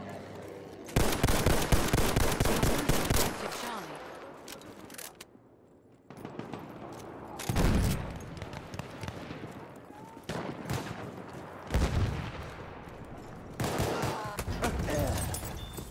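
Rifle shots bang loudly in quick bursts.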